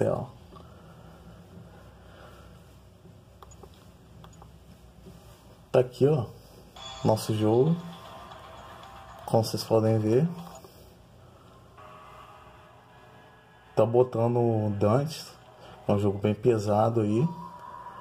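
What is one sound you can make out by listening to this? Buttons on a handheld game console click softly.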